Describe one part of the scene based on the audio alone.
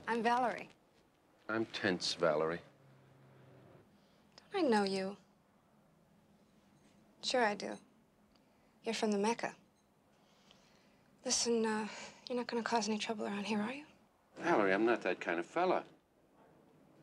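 A woman speaks quietly and tensely nearby.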